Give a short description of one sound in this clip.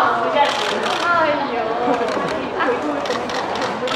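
Young women laugh.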